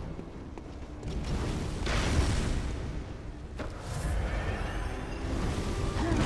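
Low rumbling and whooshing game combat sounds play.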